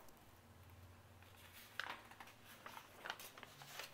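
A sheet of paper rustles as it slides off.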